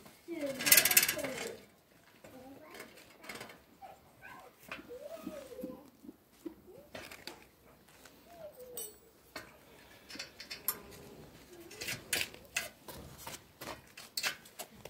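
Metal parts of a bicycle wheel click and rattle as hands work on them.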